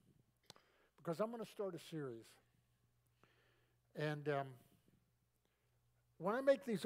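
An elderly man speaks slowly and calmly through a microphone, with long pauses.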